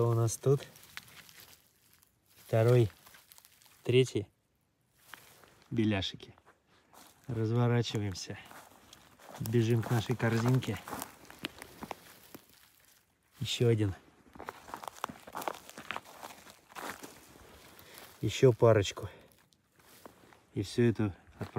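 A man speaks calmly in short phrases close to the microphone.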